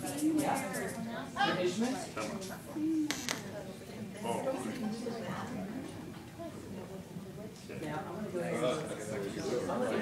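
Men talk nearby in a quiet room.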